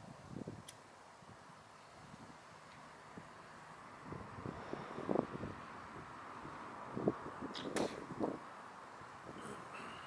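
A car drives past on a road at night.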